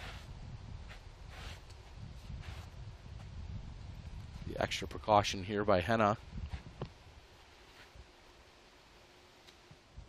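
Footsteps shuffle softly on artificial turf.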